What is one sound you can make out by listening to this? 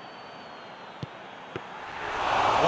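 A ball is kicked with a thud.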